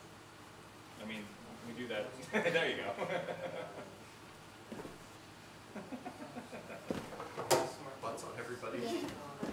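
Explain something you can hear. A group of young men and women laugh loudly nearby.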